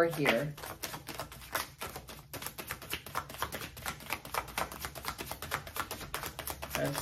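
Playing cards riffle and flutter as they are shuffled.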